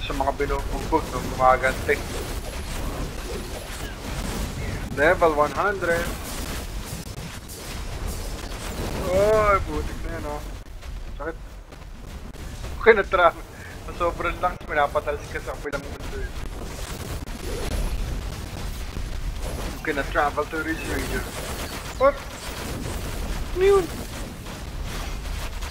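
Magic spells whoosh and crash in a loud fight.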